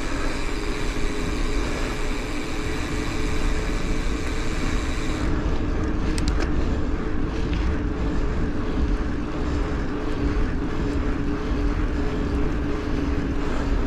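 Wind buffets loudly past a bicycle rider outdoors.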